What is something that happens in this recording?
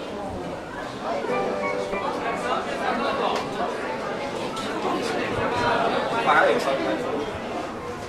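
Young women talk casually nearby in an echoing passage.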